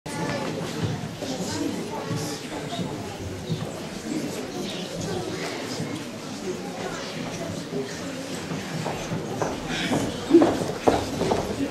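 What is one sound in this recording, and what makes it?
A group of boys murmurs and chatters quietly in an echoing hall.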